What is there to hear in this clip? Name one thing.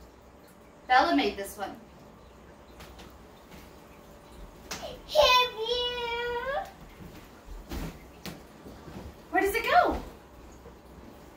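A toddler squeals and babbles close by.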